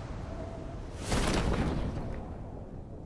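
A parachute snaps open with a rushing whoosh.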